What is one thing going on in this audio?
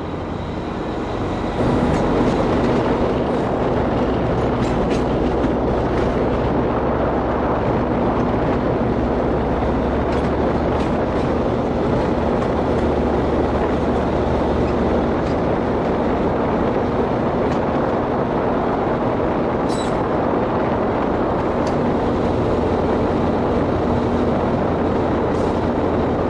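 A train rolls along rails, heard from inside the locomotive cab.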